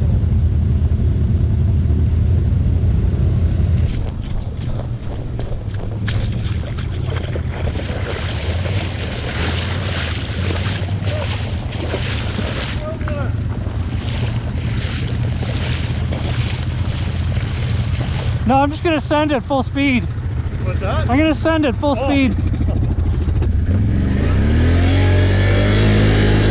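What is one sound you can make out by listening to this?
An all-terrain vehicle engine rumbles steadily close by.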